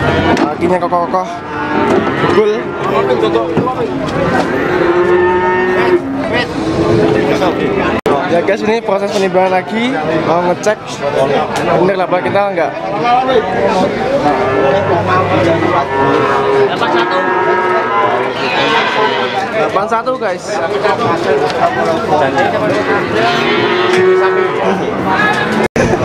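A crowd of men talks and calls out loudly all around, close by, outdoors.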